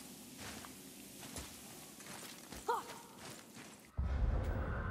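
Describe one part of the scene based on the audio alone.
Heavy footsteps crunch slowly on gravel and stone.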